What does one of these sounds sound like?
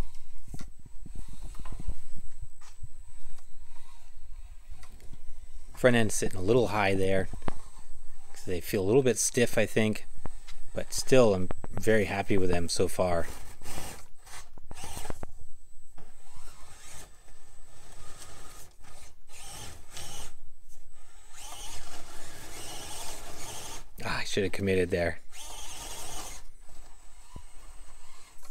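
A small electric motor whirs as a toy truck crawls.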